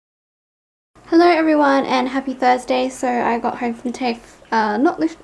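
A young woman talks casually and close up.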